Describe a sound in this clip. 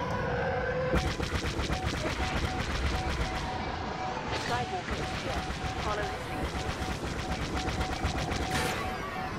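Laser cannons fire in rapid bursts.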